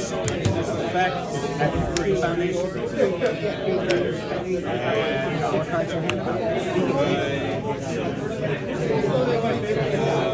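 Cards are laid on a table with light taps.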